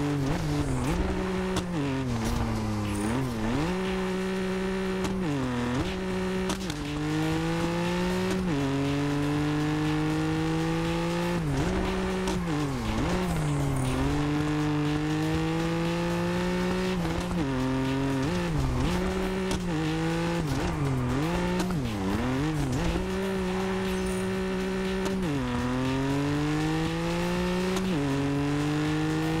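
A car engine roars loudly, revving up and dropping sharply with each gear change.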